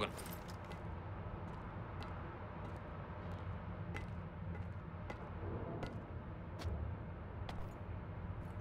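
Footsteps tap on a hard metal floor.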